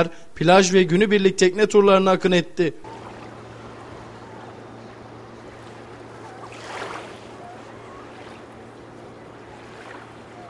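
Motorboat engines drone steadily as boats speed across the water.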